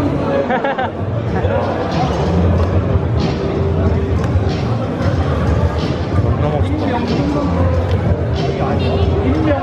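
A large indoor crowd chatters in an echoing hall.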